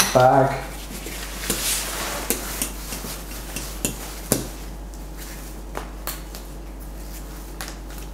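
Straps and buckles click as a pack is fastened on.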